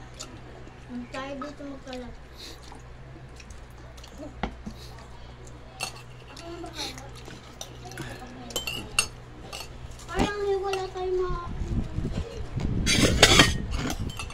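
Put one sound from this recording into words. A young child speaks nearby in a high voice.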